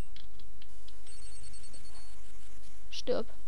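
A crackling electric zap sound effect plays.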